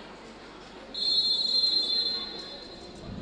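Sports shoes squeak on a hall floor.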